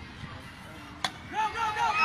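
A bat knocks a baseball with a short crack.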